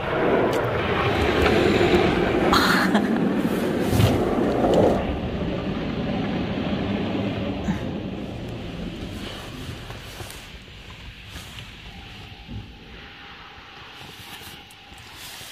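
Hail drums hard on a car's roof and windows, heard from inside the car, then eases off.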